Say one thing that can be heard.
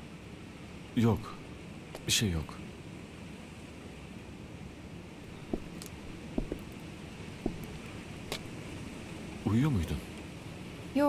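A man speaks in short, tense phrases nearby.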